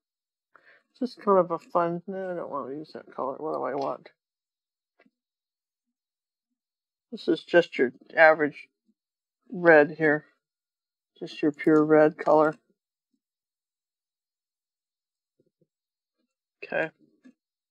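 An elderly woman talks calmly and close to a microphone, in short bursts.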